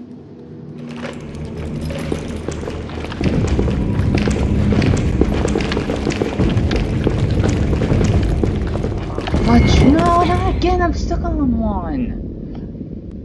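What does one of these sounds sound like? A crowd of heavy footsteps thunders and rushes close by.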